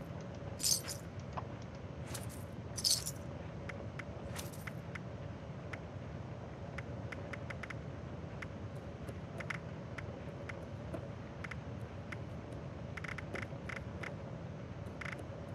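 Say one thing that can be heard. Soft menu clicks tick quickly again and again.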